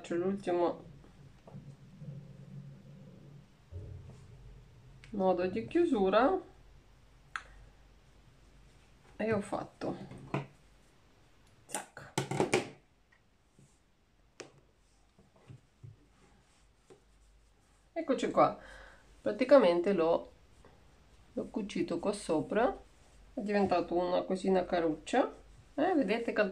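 A woman speaks calmly close by, in short bursts.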